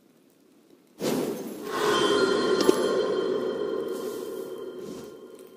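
A bright, ringing fanfare chime plays and slowly fades.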